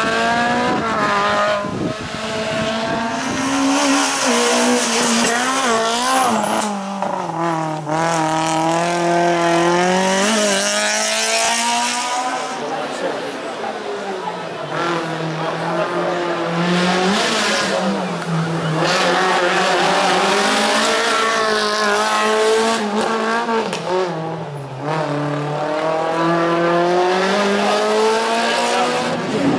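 A racing car engine revs hard, rising and falling in pitch through gear changes.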